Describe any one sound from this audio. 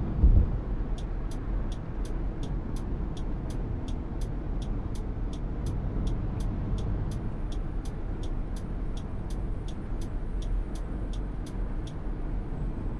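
A turn signal ticks quickly and evenly.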